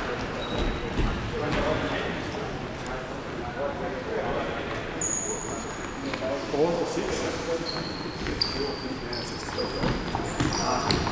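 A ball thumps as it is kicked.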